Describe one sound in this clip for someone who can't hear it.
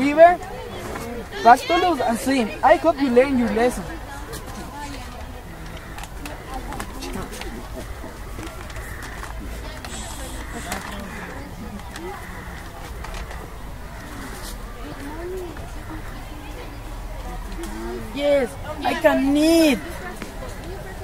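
Teenage boys talk with animation close by, outdoors.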